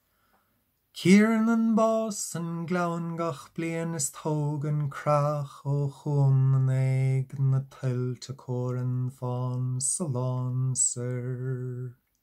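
A man sings solo, close to a microphone, unaccompanied.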